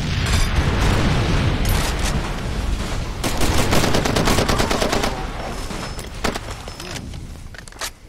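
A loud explosion booms and rumbles before fading.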